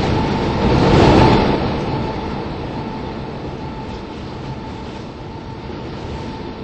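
A subway train rumbles past in a tunnel and fades away.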